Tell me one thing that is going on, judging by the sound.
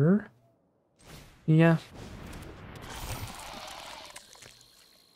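A digital card lands on a game board with a chiming effect.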